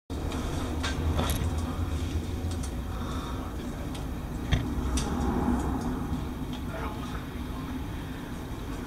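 A man speaks quietly in an echoing tunnel.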